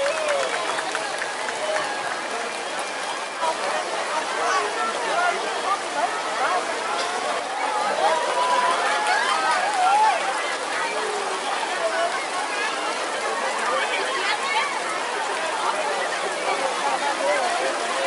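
A crowd of people chatters and cheers loudly outdoors.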